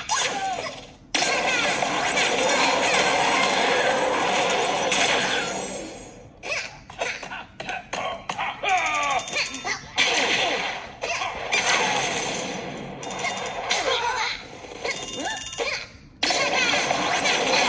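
Video game sound effects whoosh and chime through a small tablet speaker.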